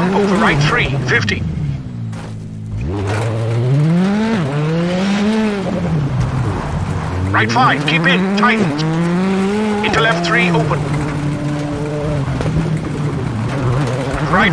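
A rally car engine revs hard, rising and dropping in pitch as it changes gear.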